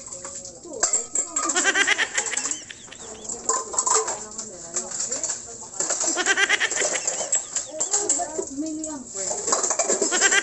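Dishes clink and clatter as they are washed.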